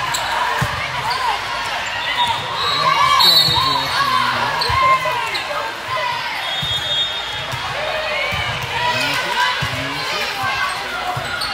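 A volleyball is struck with hard thuds.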